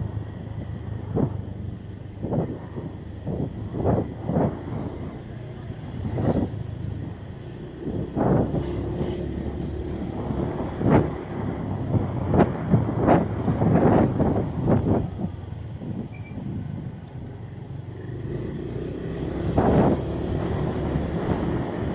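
A motorcycle engine hums steadily as the ride goes along a street.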